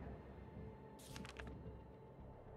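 A page turns with a short rustle.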